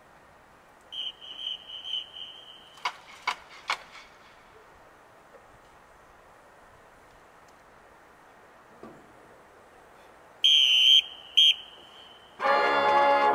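A whistle blows in short shrill blasts.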